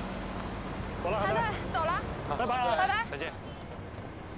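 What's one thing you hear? Young men call out farewells outdoors.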